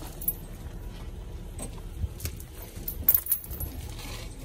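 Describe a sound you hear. A metal chain clinks and rattles.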